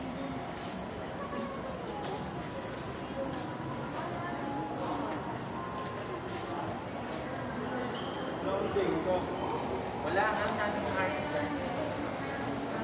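People murmur and chatter in the background of an echoing indoor space.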